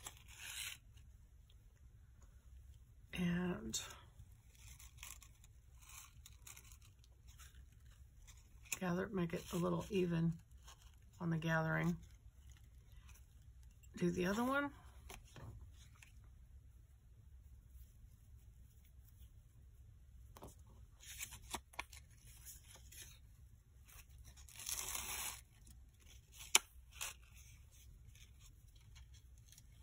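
Clear plastic film crinkles and rustles between fingers.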